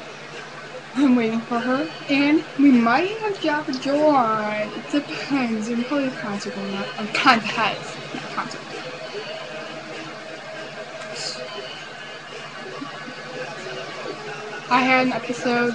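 A young girl sings close to a small microphone.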